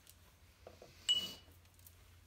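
A ceramic piece clinks against a kiln.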